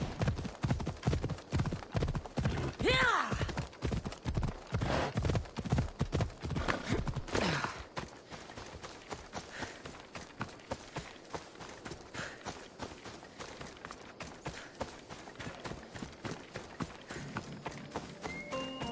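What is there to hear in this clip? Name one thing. Footsteps rustle through dry grass at a steady pace.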